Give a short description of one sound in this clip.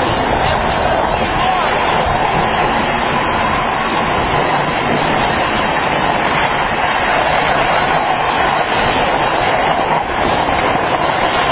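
Small plastic wheels skid and rumble on asphalt.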